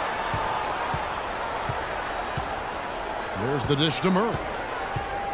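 A basketball bounces on a hardwood court in a steady dribble.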